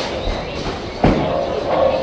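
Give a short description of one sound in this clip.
A heavy ball thuds onto a wooden lane.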